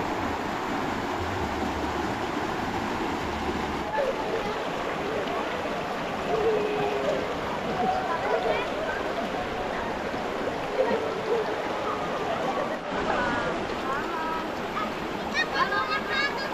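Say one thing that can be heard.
A shallow river rushes and burbles over rocks.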